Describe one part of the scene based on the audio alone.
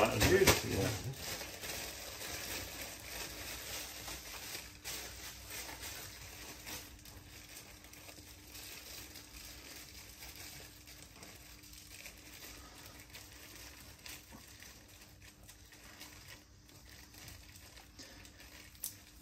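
A knife slices through meat with soft scraping strokes.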